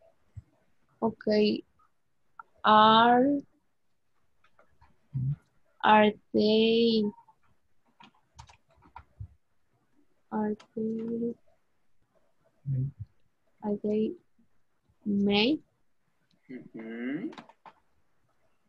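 A child speaks slowly over an online call, in short phrases with pauses.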